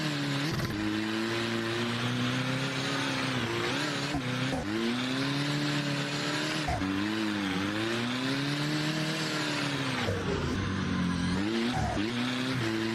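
A car engine revs hard, its pitch rising and falling throughout.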